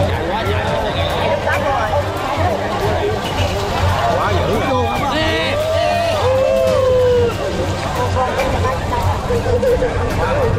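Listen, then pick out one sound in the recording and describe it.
A large outdoor crowd shouts and cheers excitedly.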